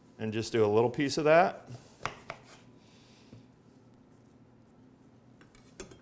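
A knife cuts through a lemon on a board.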